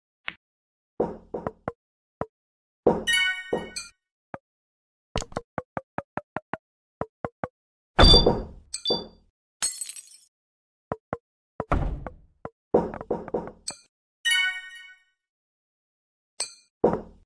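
Wooden blocks clatter and crash as a rolling log smashes through them.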